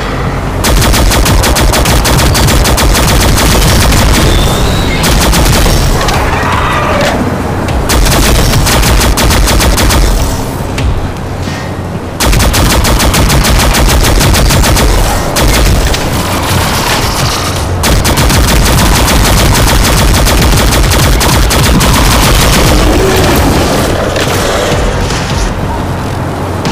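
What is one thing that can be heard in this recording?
A game rifle fires in rapid bursts of sharp shots.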